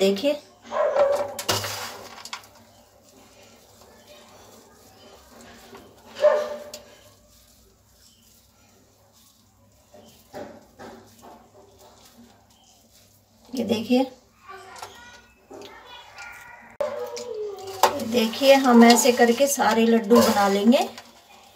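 Hands squeeze and pat a sticky rice mixture with soft squelching rustles.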